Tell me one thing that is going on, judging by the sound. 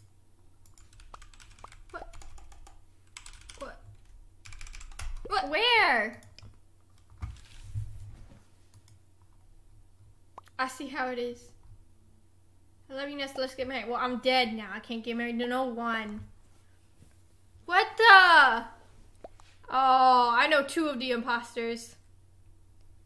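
Young women talk with animation, close to a microphone.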